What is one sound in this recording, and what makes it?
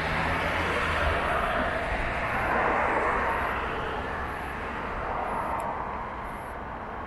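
Cars pass by close on the street and fade away.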